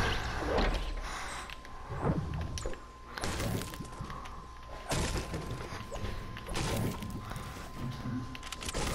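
Wooden panels snap into place with quick, hollow clattering thuds, again and again.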